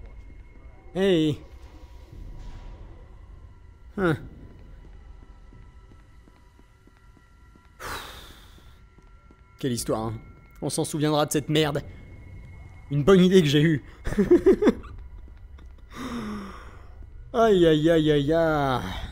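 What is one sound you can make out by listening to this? A young man talks in bursts with animation, close to a microphone.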